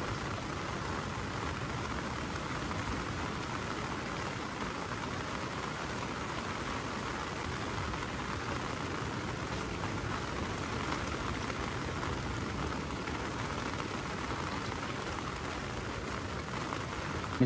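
Rain patters steadily on an umbrella close overhead.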